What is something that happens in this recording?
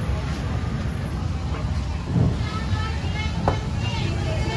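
A heavy cleaver thuds down through fish onto a wooden block.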